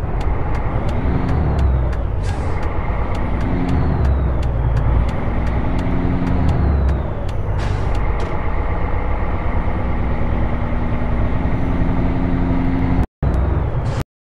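A truck engine rumbles and revs as it shifts through gears.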